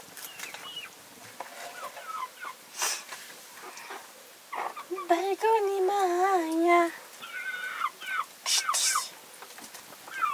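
A young woman talks playfully to a baby nearby.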